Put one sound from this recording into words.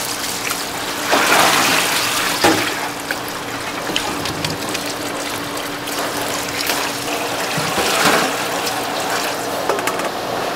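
Water pours out through a metal strainer and splashes into a sink.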